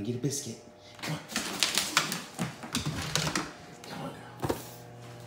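A dog's claws click and patter across a wooden floor.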